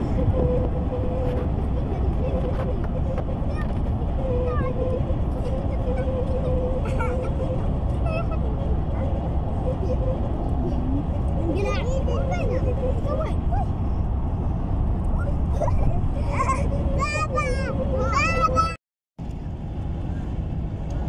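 Tyres roar steadily on a road from inside a moving car.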